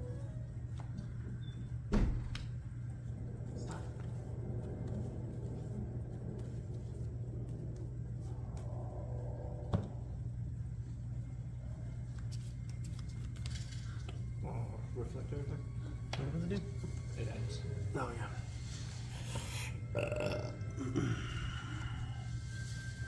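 Playing cards are shuffled and tapped down on a tabletop.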